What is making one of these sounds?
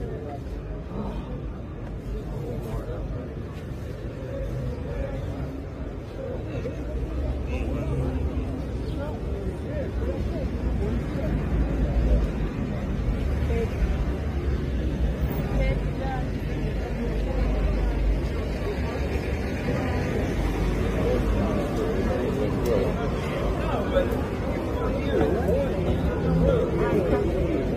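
Men and women talk indistinctly nearby.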